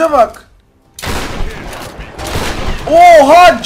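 Gunfire rattles and bullets strike metal.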